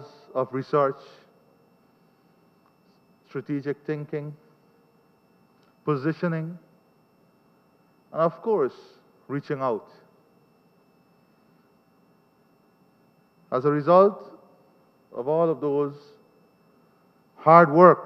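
A man speaks slowly and formally into a microphone, with short pauses, heard through a loudspeaker in a large room.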